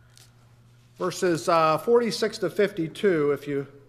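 An older man reads aloud calmly through a microphone in a large echoing room.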